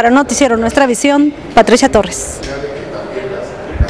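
A middle-aged woman speaks steadily into a microphone, close by.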